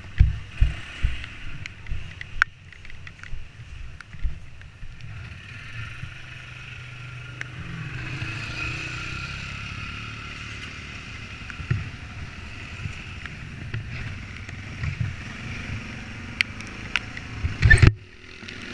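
A quad bike engine rumbles steadily close by.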